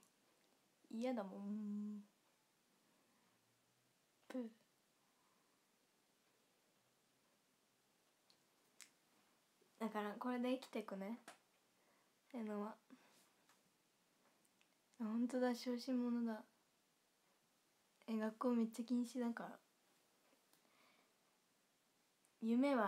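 A young woman talks with animation close to a phone microphone, in short bursts.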